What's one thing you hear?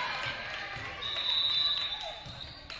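A referee's whistle blows once in an echoing gym.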